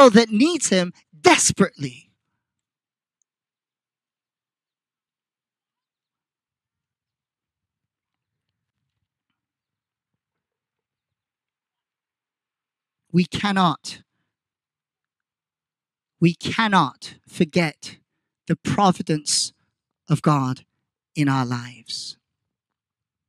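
A young man speaks into a microphone in short, measured phrases, heard through a loudspeaker outdoors.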